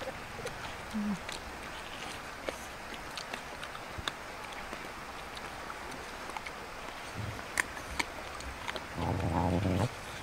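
Dogs crunch and lick food close by.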